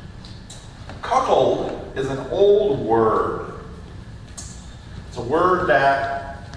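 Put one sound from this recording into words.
An older man speaks calmly in a large echoing hall.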